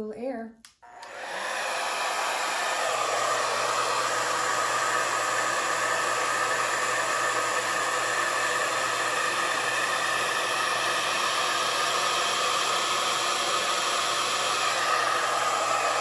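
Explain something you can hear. A hair dryer blows with a steady loud whoosh.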